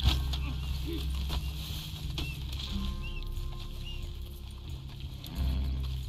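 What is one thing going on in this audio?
Footsteps tread through dry grass.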